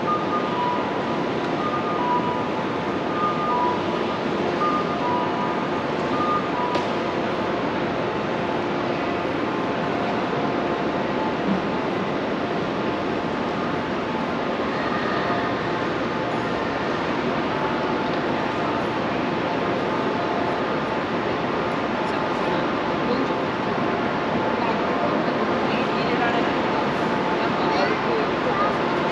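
A busy hum of people and distant traffic fills a wide covered area.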